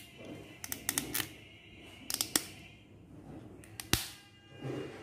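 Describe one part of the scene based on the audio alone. Small plastic clicks and snaps as a part is fitted into eyeglass frames.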